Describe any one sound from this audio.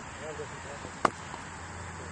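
A cricket bat strikes a ball with a sharp crack outdoors.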